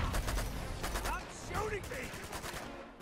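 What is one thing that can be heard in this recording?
A man speaks with frustration, close by.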